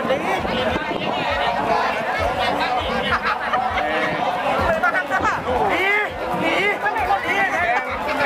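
Many paddles splash rhythmically in water.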